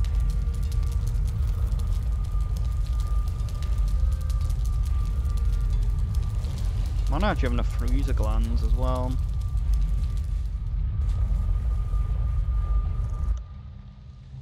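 A fire roars with a deep, steady rumble.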